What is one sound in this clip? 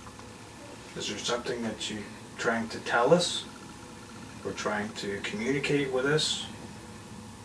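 A man speaks quietly nearby, in short bursts.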